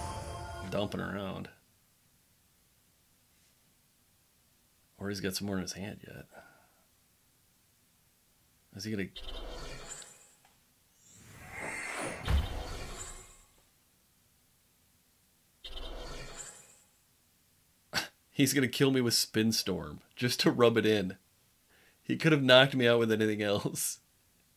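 A man talks with animation into a nearby microphone, in short bursts with pauses.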